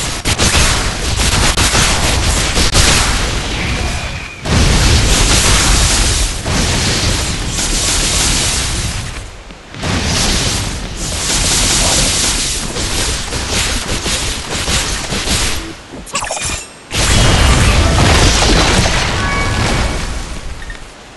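Magic blasts crackle and boom during a fight.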